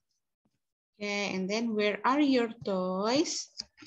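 A young girl speaks through an online call, in a drawn-out, sing-song voice.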